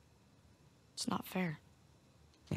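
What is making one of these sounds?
A boy answers briefly in a plaintive voice.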